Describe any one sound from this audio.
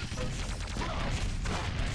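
A rocket explosion booms.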